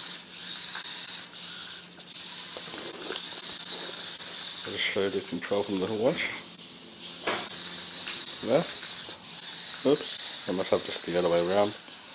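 A small robot's motors whir steadily as it rolls across a hard floor.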